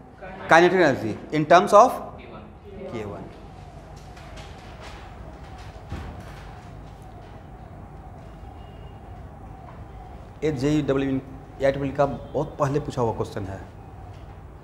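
A man speaks in a lecturing tone close by.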